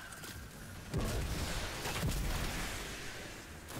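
Loud electric blasts crackle and boom.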